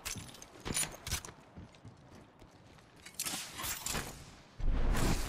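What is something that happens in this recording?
Footsteps clatter quickly on a hard floor.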